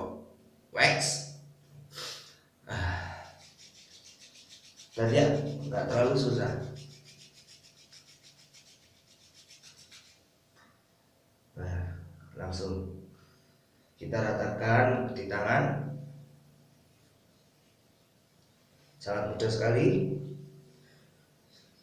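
A man speaks with animation close by, in a small echoing room.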